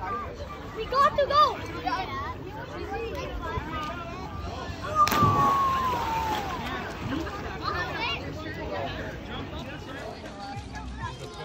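Children shout and cheer excitedly nearby, outdoors.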